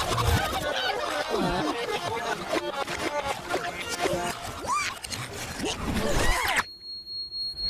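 Cartoon animals chatter and squeak in high voices.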